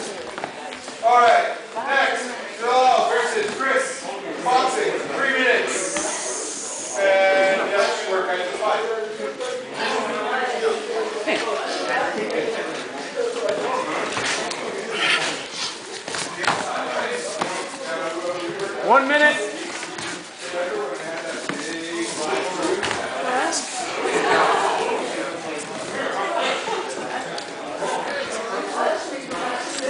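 Men talk and call out nearby in an echoing room.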